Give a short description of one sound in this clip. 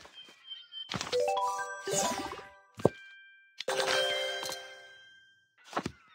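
Bright, tinkling game chimes ring out in quick rising notes.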